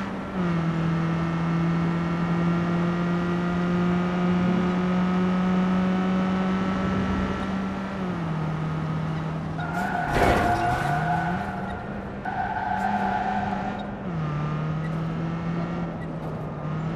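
A car engine hums steadily and shifts pitch as the car speeds up and slows.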